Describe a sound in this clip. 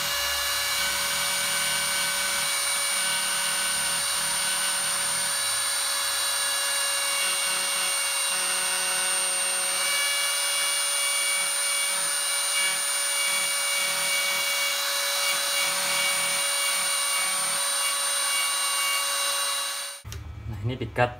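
A router spindle whines loudly as it cuts.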